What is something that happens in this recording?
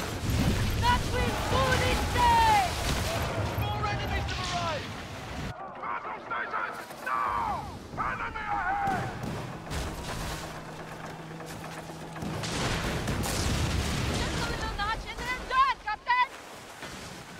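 Waves splash against a sailing ship's hull.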